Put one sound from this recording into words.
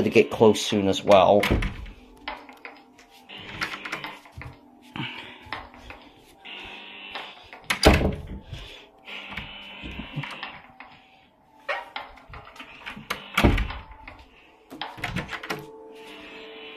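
A door handle clicks as a door is opened.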